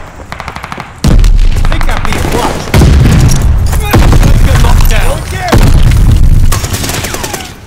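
A semi-automatic rifle fires shots in quick bursts.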